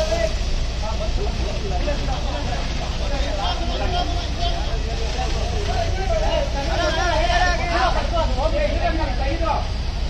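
Several men shout to each other nearby.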